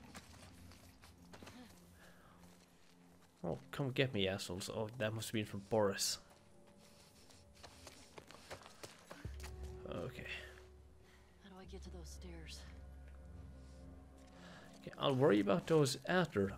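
Footsteps run across grass and gravel.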